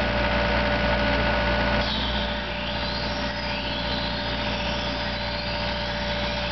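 A diesel skid steer loader engine runs.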